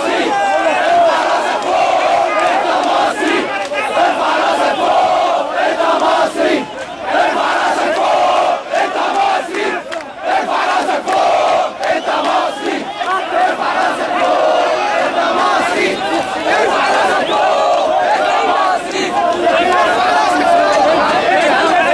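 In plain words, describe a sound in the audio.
A large crowd of men chants and cheers loudly outdoors.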